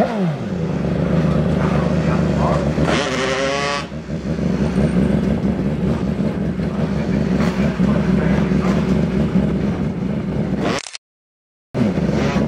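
A motorcycle engine rumbles loudly and revs up and down.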